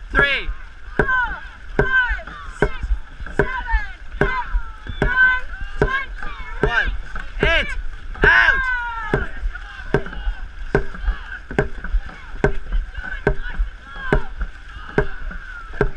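Paddles splash into water in a steady quick rhythm.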